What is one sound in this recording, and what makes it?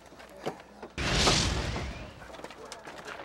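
A bobsled roars past close by in a sudden rushing whoosh.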